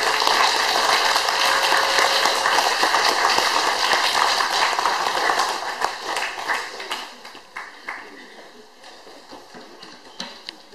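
Tabla drums are tapped by hand.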